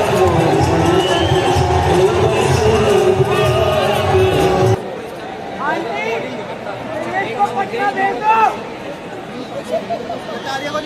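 A large crowd cheers and shouts loudly in a stadium.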